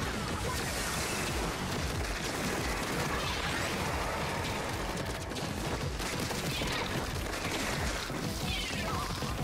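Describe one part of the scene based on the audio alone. Ink guns fire and splatter in a busy video game.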